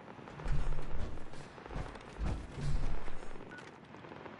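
A heavy wooden door thuds and creaks open.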